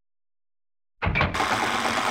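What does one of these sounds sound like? A mechanism whirs and grinds loudly.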